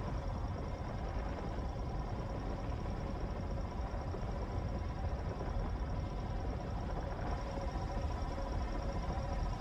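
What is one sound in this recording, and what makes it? A laser beam hums with a steady electronic tone.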